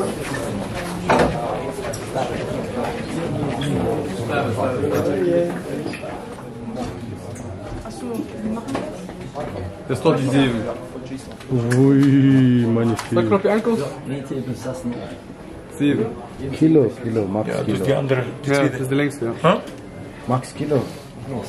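Several men and women talk nearby.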